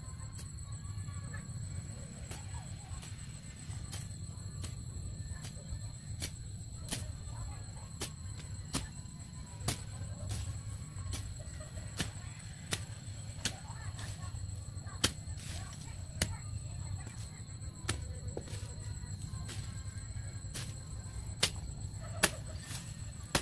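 A blade swishes and chops through grass in repeated strokes.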